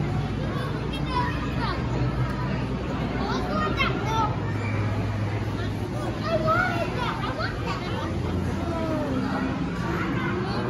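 Young children chatter and call out excitedly nearby.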